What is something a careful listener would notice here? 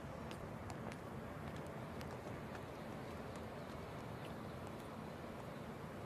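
Many feet march in step on the ground.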